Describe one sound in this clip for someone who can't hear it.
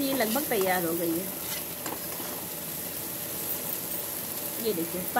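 A metal spoon scrapes and stirs dry chickpeas in a pan.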